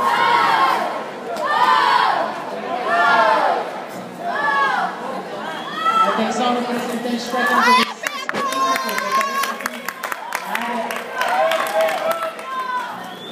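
A crowd of spectators cheers and shouts loudly close by, outdoors.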